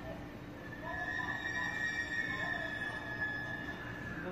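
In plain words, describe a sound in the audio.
Train brakes squeal with a long high whine.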